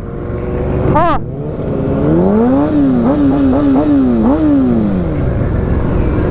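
An inline-four sport bike revs sharply.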